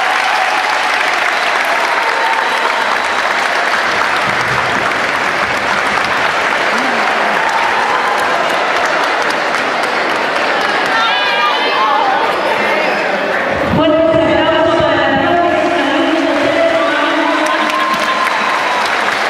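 A crowd of girls claps in a large echoing hall.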